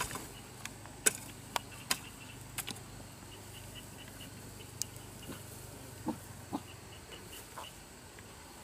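A hand tool taps and scrapes in soil.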